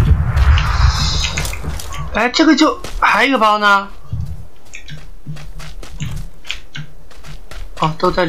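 Footsteps rustle through dry grass.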